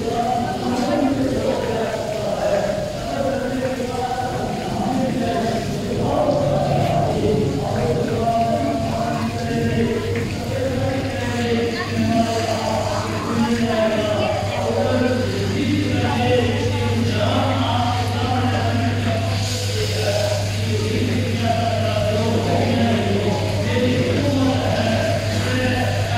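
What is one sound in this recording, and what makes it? A crowd of men murmurs and talks in an echoing hall.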